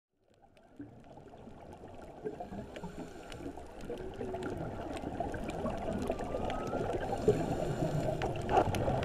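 Bubbles gurgle and rumble close by underwater, growing louder.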